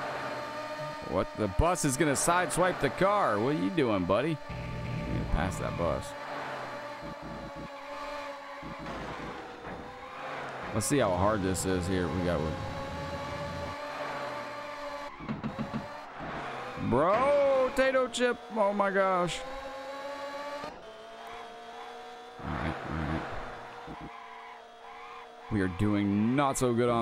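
Other vehicles whoosh past.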